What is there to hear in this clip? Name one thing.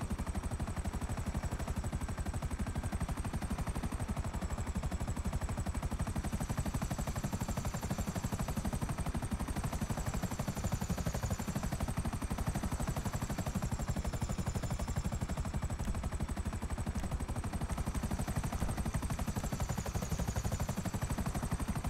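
A military attack helicopter's rotor thumps in flight.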